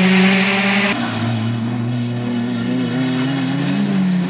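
A second rally car engine roars as it approaches.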